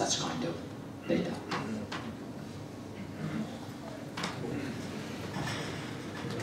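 A woman speaks calmly into a microphone in an echoing room.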